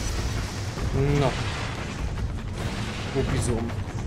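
A young man talks into a microphone.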